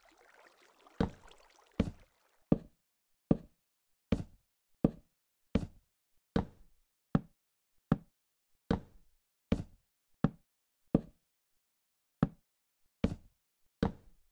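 Wooden blocks thud as they are placed one after another in a steady rhythm.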